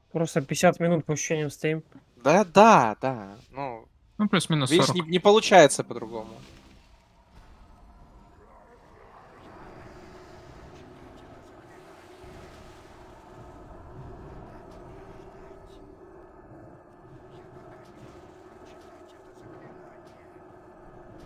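Magic spells crackle and blast in a video game battle.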